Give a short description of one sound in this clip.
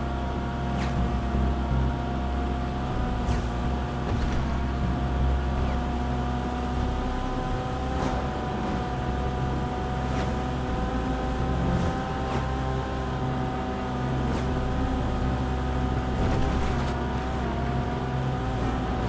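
A sports car engine hums steadily at speed.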